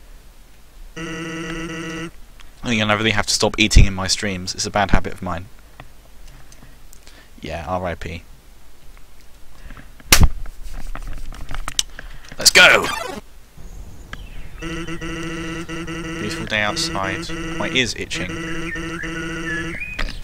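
Chiptune game music plays.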